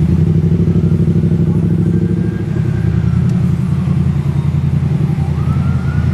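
Heavy truck engines rumble steadily nearby.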